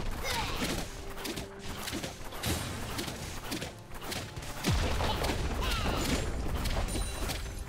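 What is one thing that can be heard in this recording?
Game spell effects whoosh, zap and clash in a fight.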